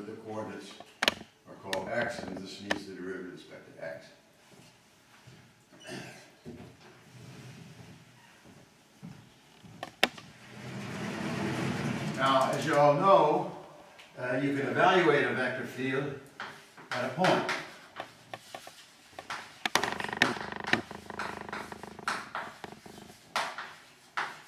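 An elderly man lectures calmly in an echoing hall.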